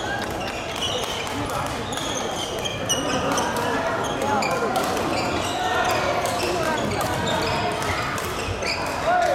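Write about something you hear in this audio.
A racket smacks a shuttlecock.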